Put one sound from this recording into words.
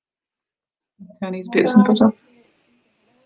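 A woman speaks briefly and calmly, close to a microphone.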